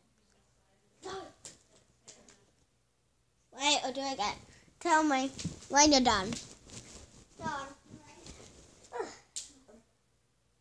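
Young girls talk and sing with animation close by.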